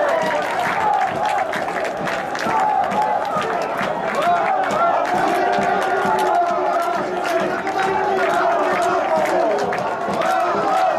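A crowd of fans chants and sings loudly outdoors.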